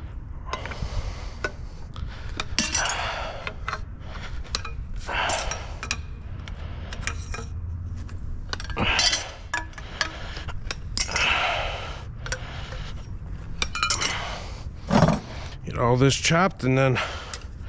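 Pieces of metal clink and rattle together.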